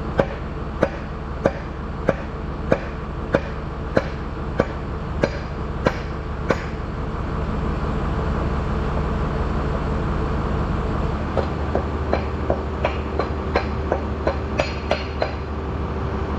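A hammer strikes metal in a steady run of ringing blows.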